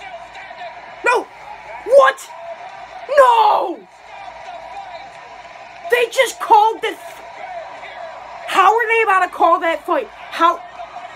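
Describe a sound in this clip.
A teenage boy talks loudly and with animation close by, in bursts.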